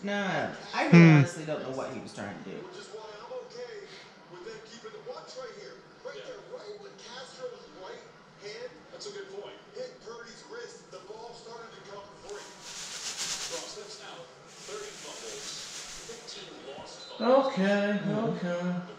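A television plays a sports broadcast with a commentator talking.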